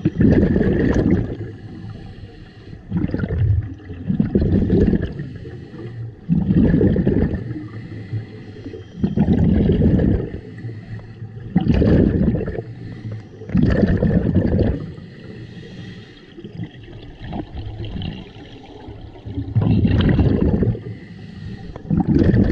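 Exhaled scuba bubbles rush and gurgle in regular bursts underwater.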